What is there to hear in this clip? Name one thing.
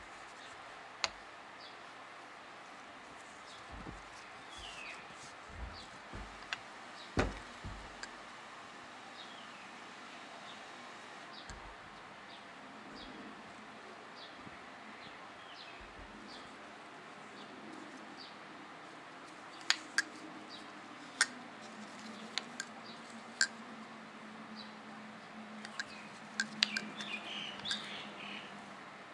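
Metal engine parts click and clink as they are handled.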